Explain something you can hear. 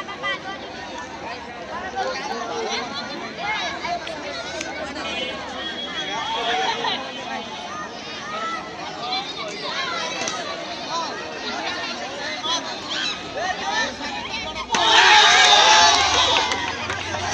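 A crowd of children and adults chatters and calls out outdoors.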